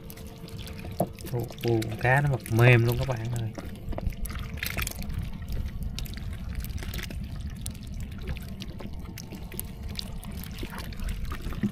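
Wet fish slither and rustle as a hand stirs through a pile of them.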